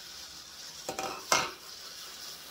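A metal lid clanks.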